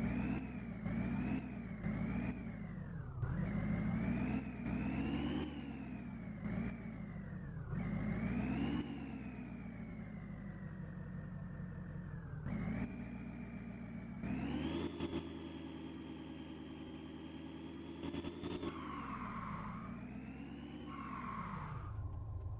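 An engine revs up and down as an off-road vehicle climbs a rough track.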